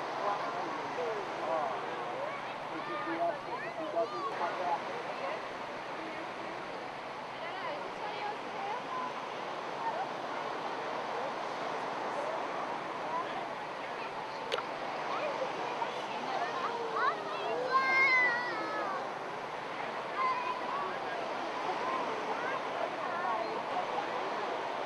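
A crowd of people chatters throughout, outdoors.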